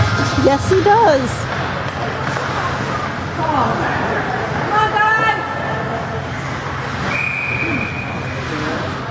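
Skates scrape and hiss across the ice in a large echoing rink.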